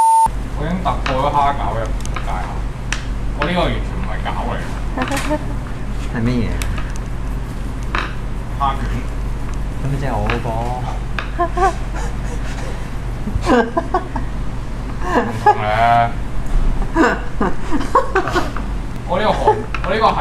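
Several young men and women talk and laugh together through microphones.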